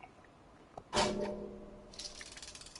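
A metal bucket clanks as a cat jumps into it.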